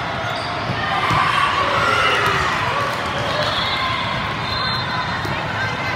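Young women shout and cheer on court.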